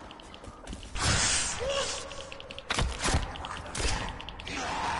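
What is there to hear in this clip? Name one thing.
An axe strikes flesh with heavy thuds.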